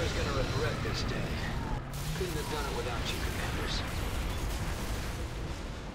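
Gunfire and blasts crackle in quick bursts.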